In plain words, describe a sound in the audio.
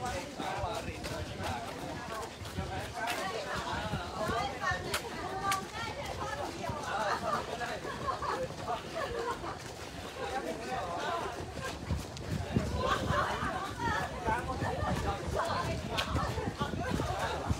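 Many footsteps patter steadily on a path as a group jogs past.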